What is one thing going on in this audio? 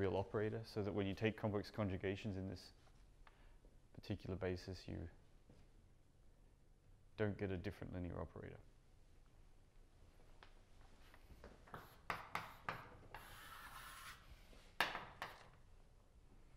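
A man lectures calmly in an echoing room.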